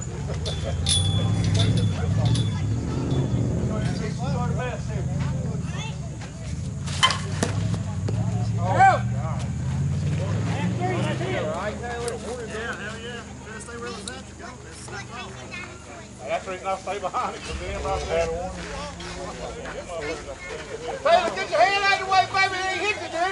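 Men call out and shout across an open field.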